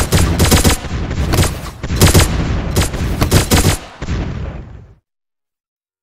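Rapid game gunfire and small explosions crackle loudly.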